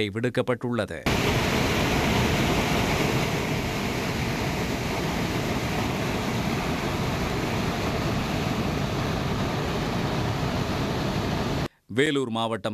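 Floodwater rushes and roars loudly over rocks.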